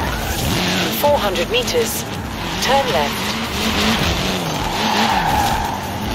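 Car tyres screech as the car slides.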